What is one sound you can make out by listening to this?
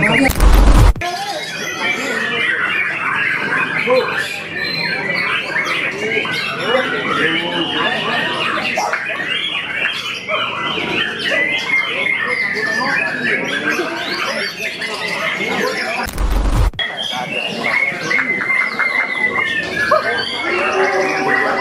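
A caged songbird sings loud, rapid trills and whistles.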